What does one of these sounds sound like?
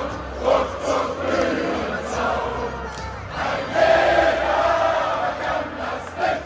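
A large stadium crowd chants and sings loudly in unison.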